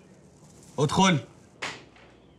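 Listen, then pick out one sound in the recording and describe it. A man exclaims briefly in surprise.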